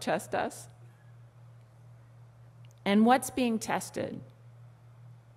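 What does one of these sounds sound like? A woman speaks calmly into a microphone, in short phrases with pauses.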